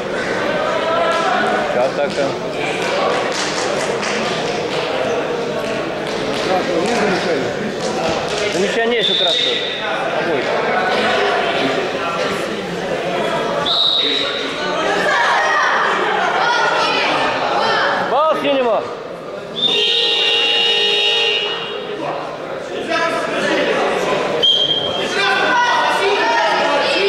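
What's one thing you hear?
A crowd of young men shouts and cheers in an echoing hall.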